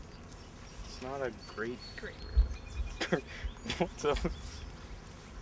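Young men talk and laugh close by outdoors.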